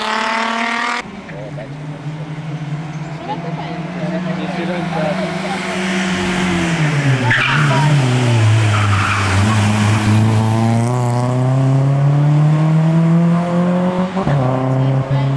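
A second hill climb race car's engine revs hard and climbs through gears.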